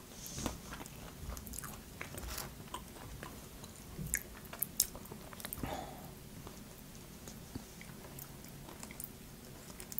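Crisp fried food crackles and crunches close up.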